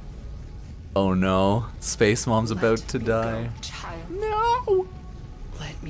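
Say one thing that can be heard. An older woman pleads in a rasping voice, close by.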